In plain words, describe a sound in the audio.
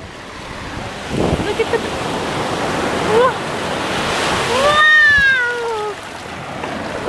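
Waves crash and wash up onto the shore.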